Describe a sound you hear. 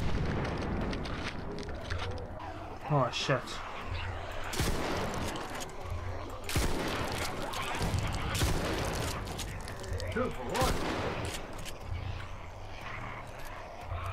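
A shotgun's pump action clacks.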